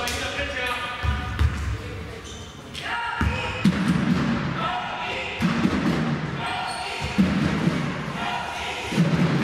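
A basketball bounces with dull thuds on the floor.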